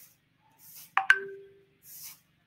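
A short notification chime sounds.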